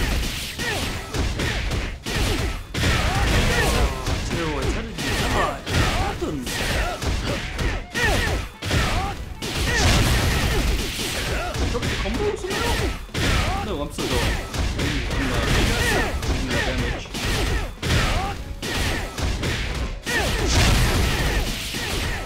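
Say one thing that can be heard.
Punches and blows land rapidly in a fight, with bursts of crackling impacts.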